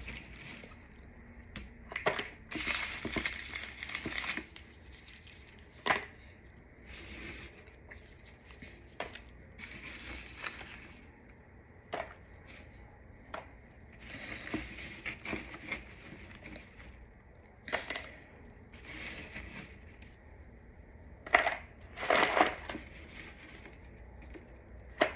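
Chalky pieces clatter into a plastic tub.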